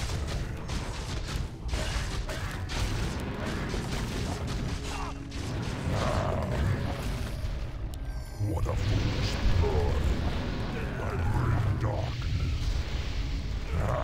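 Magic spells crackle and whoosh in a busy fight.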